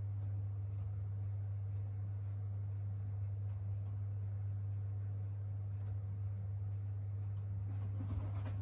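A washing machine hums steadily as its drum turns.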